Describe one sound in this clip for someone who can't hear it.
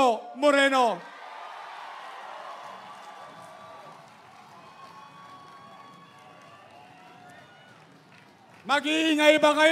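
A large crowd cheers.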